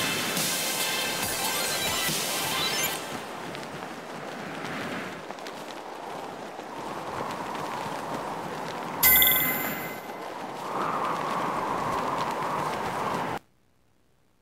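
A rushing roar of air sweeps past during fast flight.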